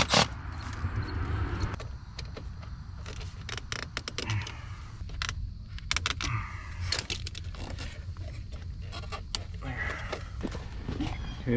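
Small metal clicks and taps sound close by.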